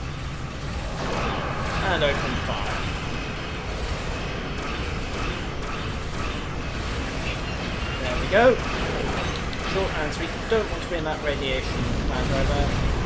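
Laser weapons fire in buzzing bursts.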